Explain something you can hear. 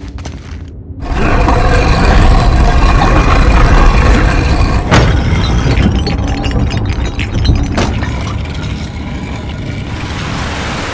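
A heavy stone block grinds and scrapes along a stone floor with a deep rumble.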